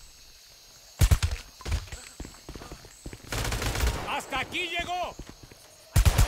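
A rifle fires bursts of gunshots.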